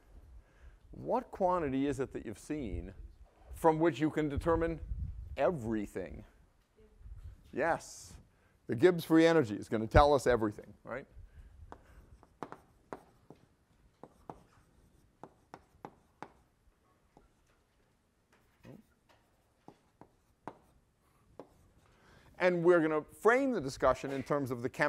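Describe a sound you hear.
A man lectures calmly.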